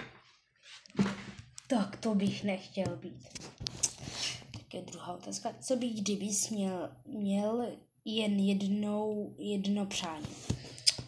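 A boy speaks with animation close to the microphone.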